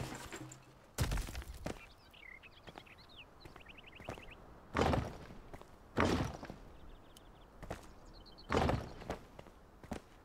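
Heavy stone blocks thud into place one after another.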